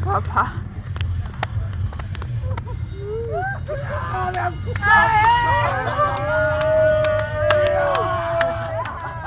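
Hands clap sharply in a rough rhythm.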